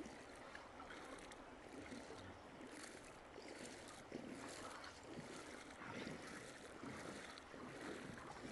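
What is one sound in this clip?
A man wades through shallow water, splashing with each step.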